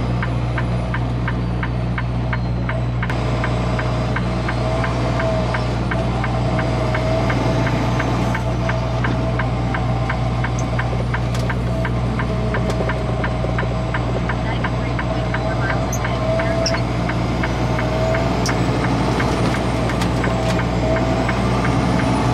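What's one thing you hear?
Tyres hiss over a wet road.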